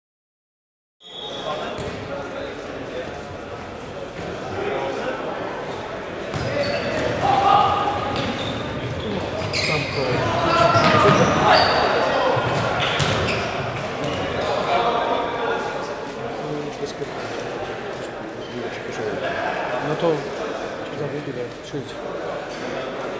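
Players shout to each other in a large echoing hall.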